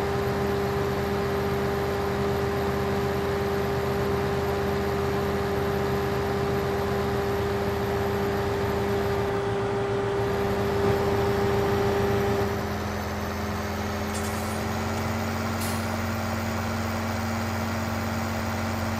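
A tractor engine drones steadily.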